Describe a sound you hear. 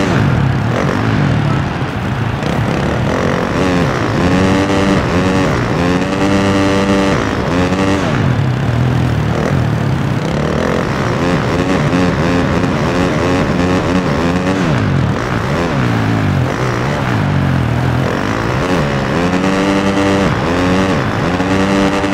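A dirt bike engine revs up and down loudly as gears shift.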